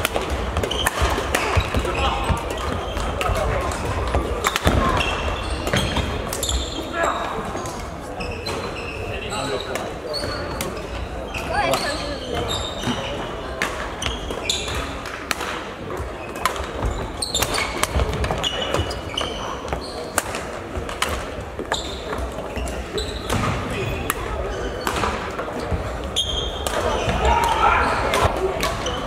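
Voices and play echo around a large hall.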